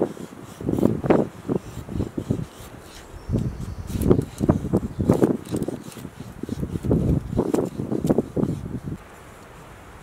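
A blade shaves thin curls from a stick of wood with scraping strokes.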